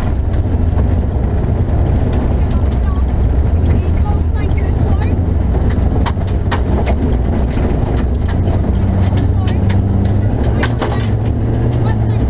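A young woman reads out pace notes through an intercom, close and muffled by her helmet.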